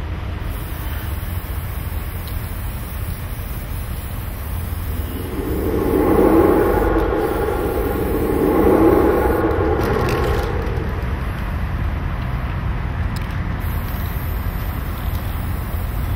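An aerosol can hisses as paint sprays onto pavement.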